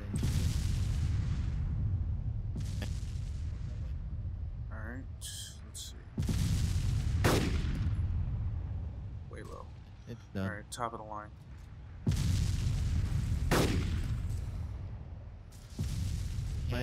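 A rifle fires loud shots that rumble and echo away.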